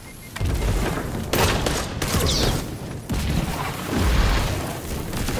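Gunfire and explosions boom in a video game.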